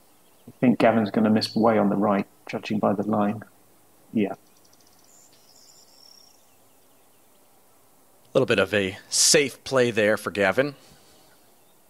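A man talks with animation over a headset microphone.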